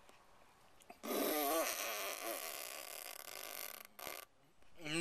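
A man blows air out hard through pursed lips.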